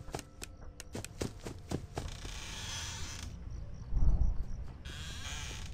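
A door creaks slowly open.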